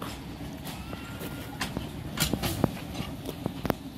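Steel wheels clank and rattle on narrow rails.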